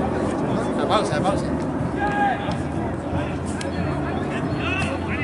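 Young men talk and call out nearby outdoors.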